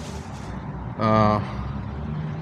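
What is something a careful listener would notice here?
An intercom buzzes briefly.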